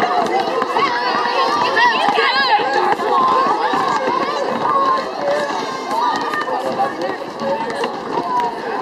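A crowd of children chatter and shout outdoors.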